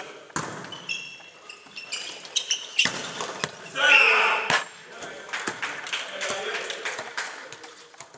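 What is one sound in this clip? A volleyball is struck with loud smacks.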